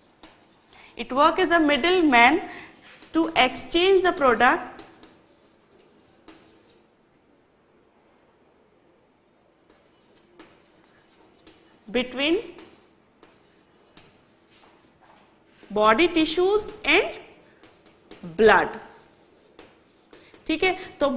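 A young woman speaks calmly and clearly, pausing between phrases.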